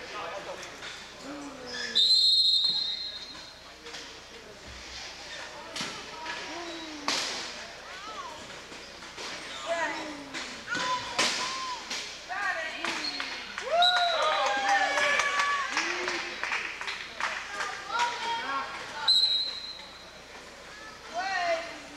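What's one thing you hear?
Men shout and call out across an echoing gym.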